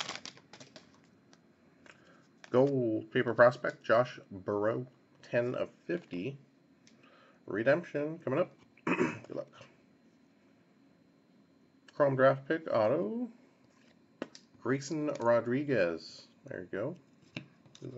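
Trading cards rustle and flick as hands sort through them.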